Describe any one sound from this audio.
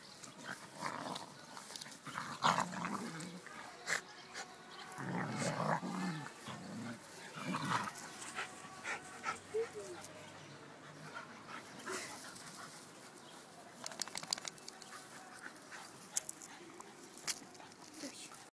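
Paws and bodies rustle through grass.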